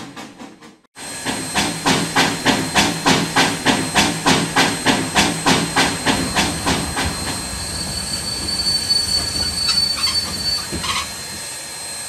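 A steam locomotive chugs steadily toward you, then slows and stops.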